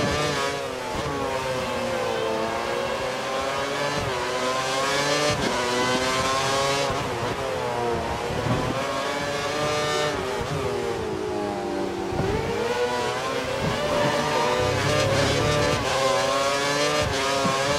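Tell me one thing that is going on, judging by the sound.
A Formula One car's V8 engine screams as it revs up and shifts through the gears.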